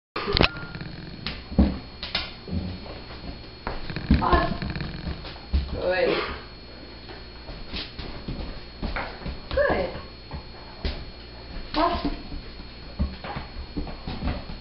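A plastic bowl knocks and scrapes on a hard floor as a dog steps on it.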